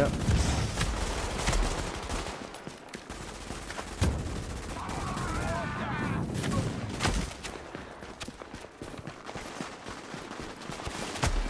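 Footsteps crunch quickly over snow.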